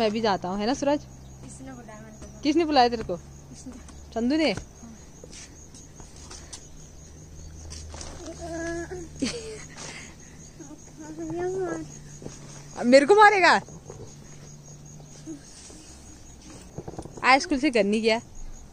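A young boy talks cheerfully close by.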